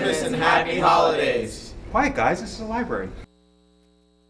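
A middle-aged man speaks up clearly to a group nearby.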